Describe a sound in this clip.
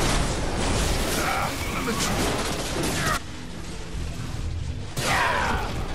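Heavy blows and clashes ring out.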